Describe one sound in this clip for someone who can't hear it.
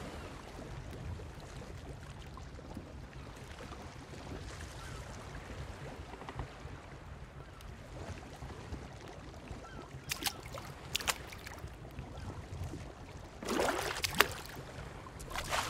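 Water laps softly and steadily.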